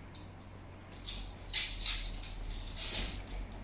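A puppy's claws patter on a wooden floor.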